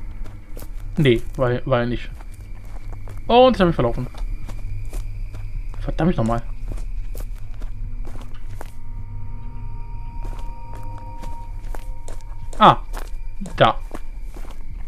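A man speaks into a microphone in short, animated bursts.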